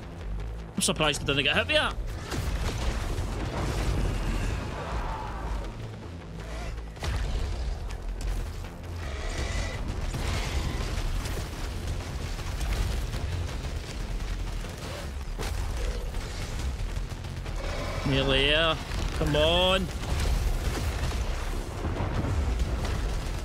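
Energy blasts crackle and burst in rapid bursts.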